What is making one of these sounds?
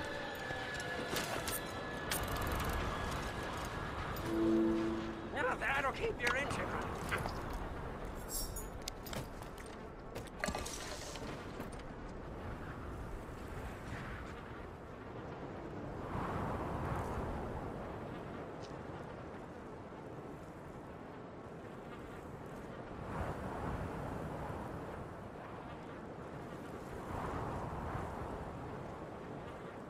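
Wind blows steadily outdoors, rising in gusts.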